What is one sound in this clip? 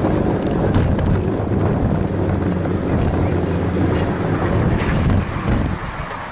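Bicycle tyres roll over pavement.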